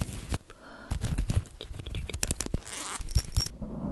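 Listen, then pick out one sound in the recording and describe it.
Fingers rub and crinkle fabric close to a microphone.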